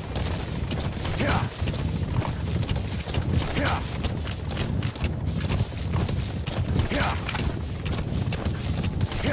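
A horse gallops, its hooves thudding in a steady rhythm on dry ground.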